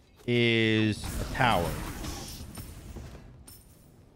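Game sound effects whoosh and crackle with a fiery blast.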